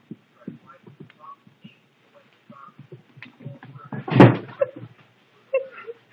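A cat's paws patter and skid on a wooden floor.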